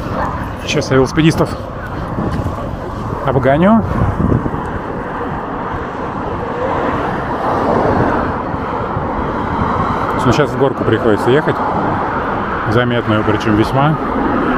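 A skateboard rolls along pavement at a distance.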